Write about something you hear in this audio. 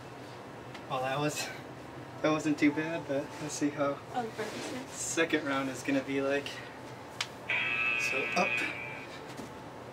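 Young men talk and laugh loudly.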